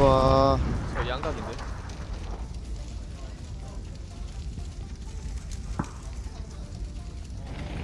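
A vehicle fire roars and crackles nearby.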